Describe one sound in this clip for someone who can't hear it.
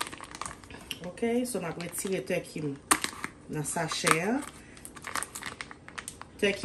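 Plastic wrapping crinkles and rustles under a hand.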